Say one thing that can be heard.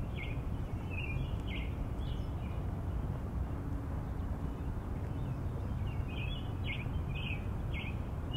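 Wind blows steadily outdoors, rumbling low.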